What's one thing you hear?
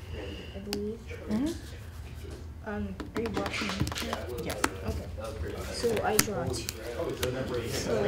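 Two men talk casually across a table, heard close by.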